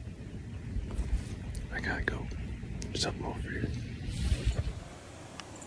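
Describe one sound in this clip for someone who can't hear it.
A man whispers quietly close by.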